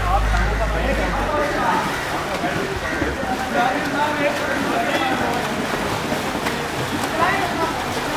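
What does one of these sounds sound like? Water splashes as people kick in a pool.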